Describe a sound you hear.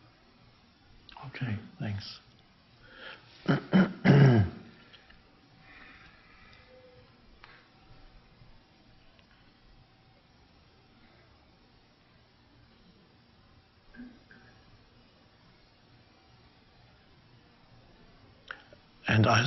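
A middle-aged man speaks calmly and thoughtfully, with long pauses.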